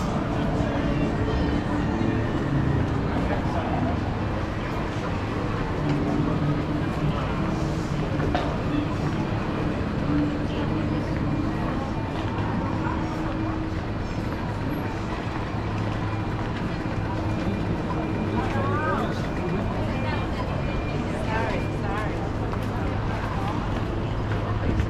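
A busy city street hums with traffic.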